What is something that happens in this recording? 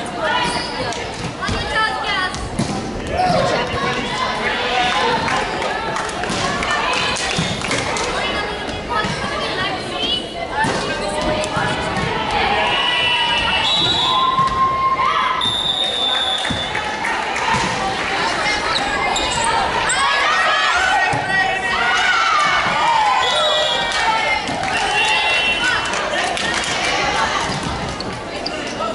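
Young women call out and shout to each other in a large echoing hall.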